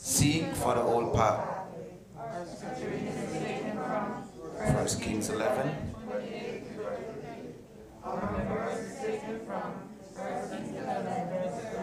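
A man speaks steadily into a microphone in a room with a slight echo.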